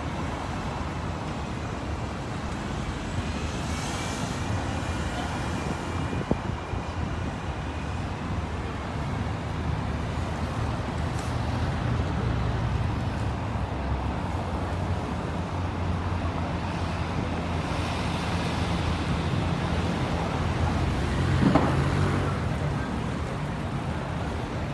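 Traffic hums steadily outdoors on a city street.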